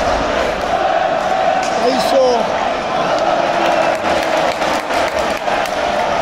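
A large crowd in an echoing arena cheers and chants loudly throughout.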